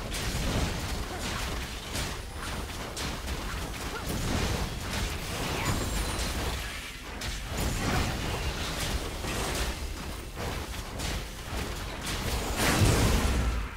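Magic blasts and hits crackle and boom in a fast fight.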